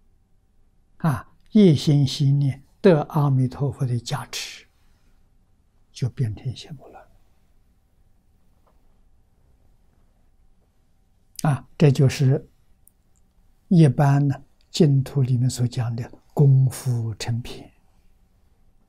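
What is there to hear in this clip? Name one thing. An elderly man speaks calmly and slowly into a close microphone, with long pauses.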